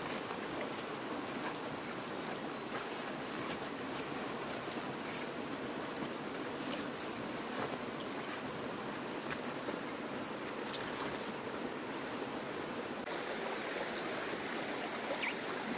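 A stream of shallow water flows and babbles steadily.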